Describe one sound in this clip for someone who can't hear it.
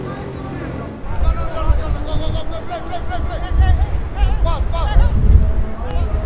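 Players shout to each other in the distance across an open field.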